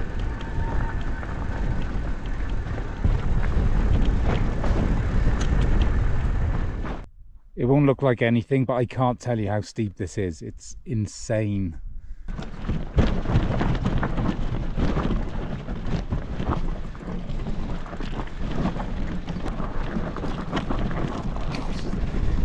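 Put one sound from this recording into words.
Tyres crunch over loose rocks.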